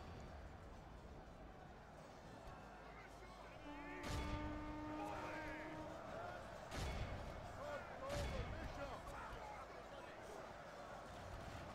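Soldiers shout and clash weapons in a distant battle.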